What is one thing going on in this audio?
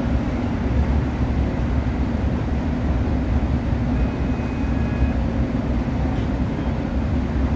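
An electric multiple-unit train rumbles along the track at speed, heard from inside the carriage.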